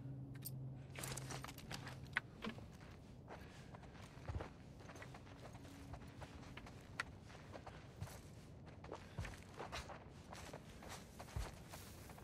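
Soft footsteps shuffle across a floor.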